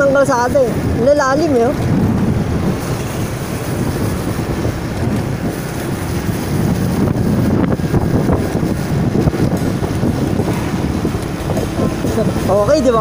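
A motorcycle engine rumbles steadily while riding along a road.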